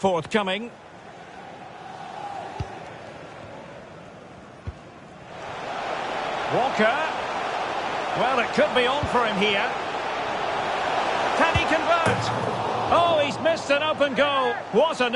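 A large crowd roars steadily in a stadium, swelling louder partway through.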